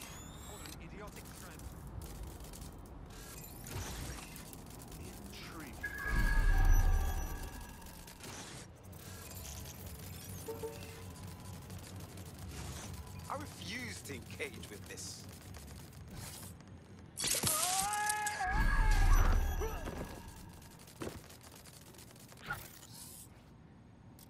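A small robot spider's metal legs tap and whir as it scuttles along.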